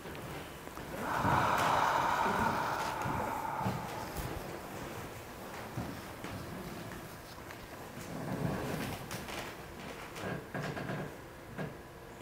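A man speaks quietly and calmly into a clip-on microphone.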